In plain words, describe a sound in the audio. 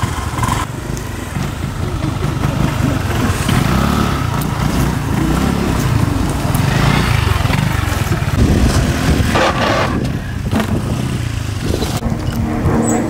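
Scooter engines rev and roar close by.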